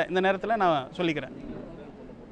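A man speaks with animation into a clip-on microphone.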